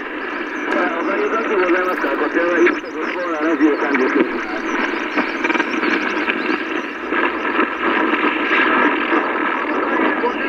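Static hisses steadily from a radio speaker.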